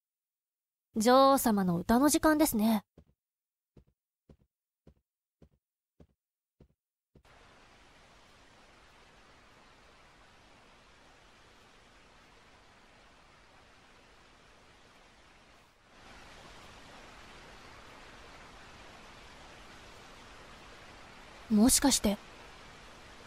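A young woman's synthetic voice speaks brightly through a microphone.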